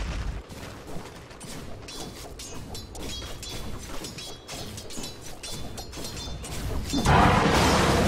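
Game fighters clash with sharp magical hits and clangs.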